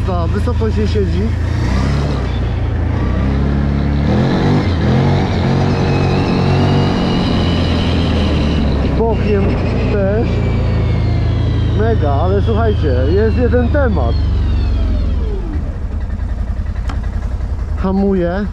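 A 1000 cc V-twin quad bike accelerates and runs along a road, then eases off.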